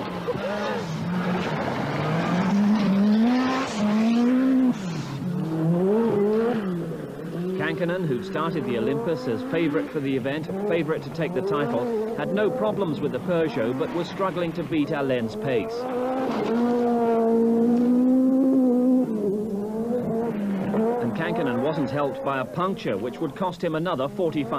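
A rally car engine roars and revs hard, rising and falling.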